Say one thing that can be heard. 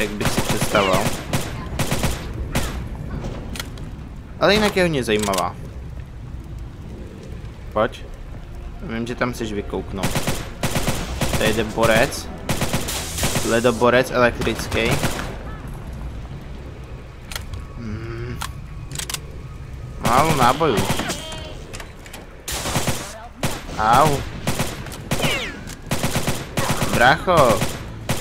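Gunshots ring out in rapid bursts, echoing off stone walls.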